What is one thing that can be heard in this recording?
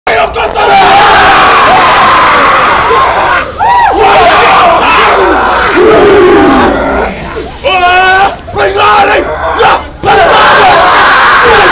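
A large group of young men chants and shouts loudly in unison, close by and outdoors.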